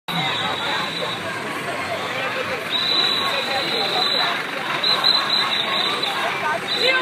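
A crowd of marchers chants and shouts loudly outdoors.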